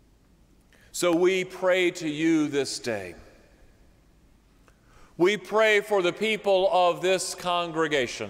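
A man sings through a microphone in a large echoing hall.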